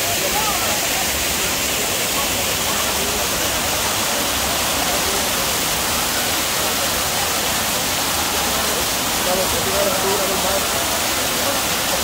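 A waterfall rushes and splashes steadily over rocks close by.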